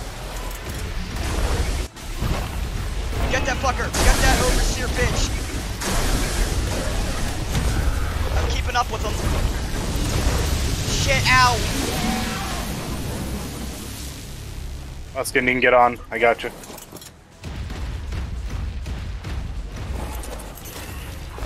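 Loud energy blasts crackle and rumble.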